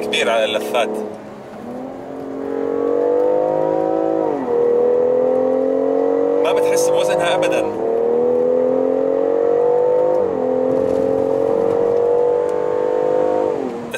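A car engine revs hard, rising in pitch and dropping with each gear change.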